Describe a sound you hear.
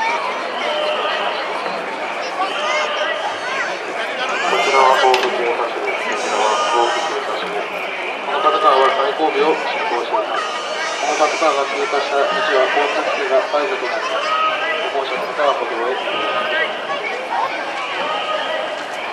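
A crowd of men in a festival procession shouts and chants outdoors.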